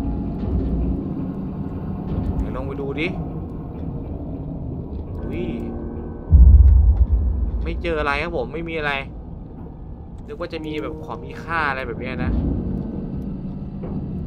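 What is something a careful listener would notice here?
A small submarine's motor hums steadily underwater.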